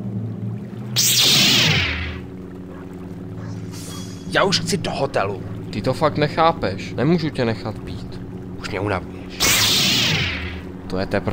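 A lightsaber ignites with a rising hum.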